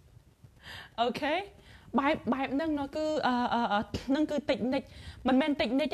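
A young woman speaks animatedly and close up into a clip-on microphone.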